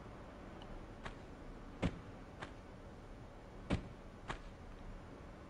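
Footsteps tap on a stone floor in a large echoing room.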